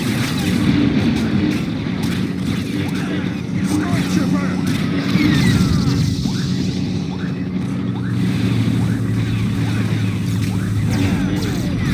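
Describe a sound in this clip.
A lightsaber swings with sharp whooshes.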